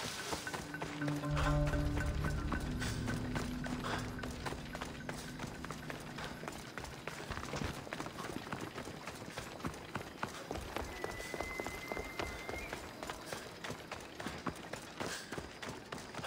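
Footsteps run quickly over dirt and stone.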